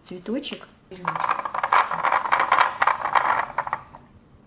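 A wooden toy cart rattles as it rolls across a hard floor.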